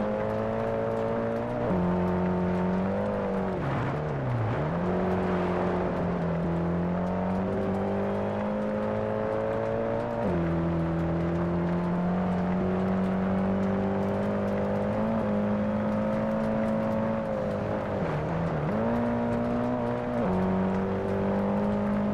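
A car engine roars loudly, shifting gears and revving up and down.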